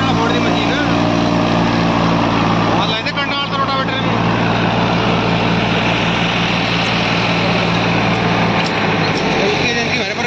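A diesel farm tractor engine runs under load.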